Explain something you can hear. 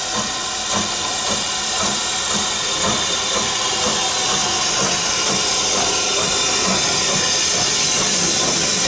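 A steam locomotive chuffs as it approaches.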